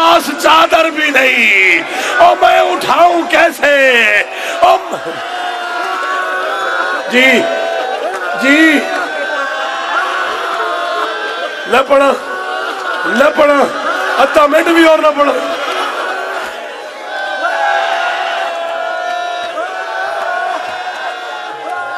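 A crowd of men beats their chests in rhythm.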